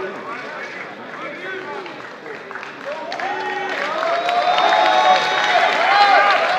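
A crowd shouts and cheers in a large echoing hall, growing louder.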